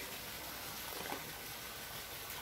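Water splashes as fish thrash at the surface.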